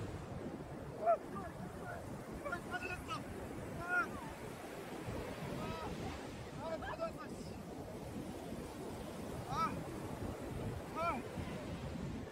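A young woman laughs playfully nearby.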